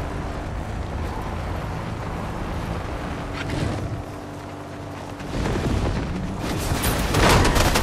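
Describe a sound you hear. Tyres skid and hiss on sand.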